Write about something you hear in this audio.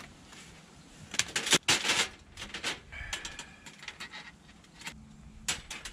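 Thin metal plates clink and clatter as they are unfolded and slotted together.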